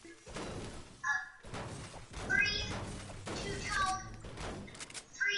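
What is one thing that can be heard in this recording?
A pickaxe clangs against metal in quick, repeated strikes.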